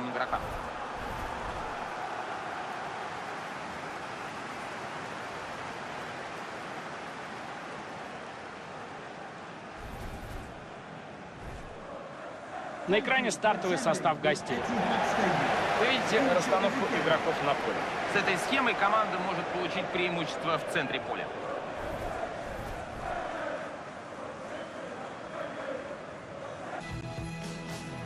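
A large stadium crowd murmurs and cheers.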